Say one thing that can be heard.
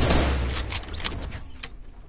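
A video game pickaxe strikes a wall.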